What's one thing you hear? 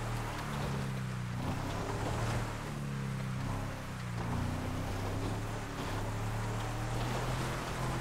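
Tyres crunch over loose gravel.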